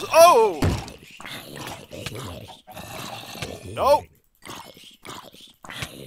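A zombie groans low and rough.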